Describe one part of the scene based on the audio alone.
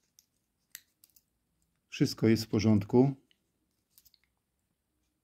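A pocket knife's blade clicks softly as fingers handle it.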